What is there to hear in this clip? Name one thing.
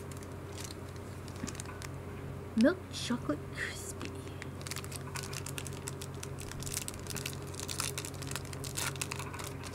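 A wrapper crinkles and rustles in hands.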